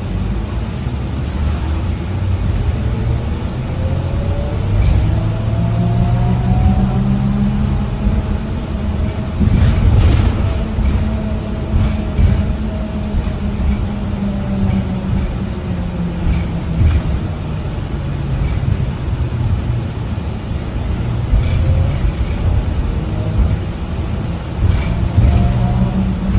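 A bus rattles and clatters over the road.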